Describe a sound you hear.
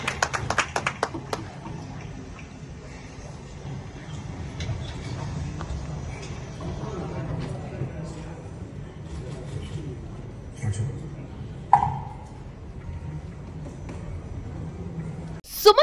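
A crowd of men murmurs and talks in a large echoing hall.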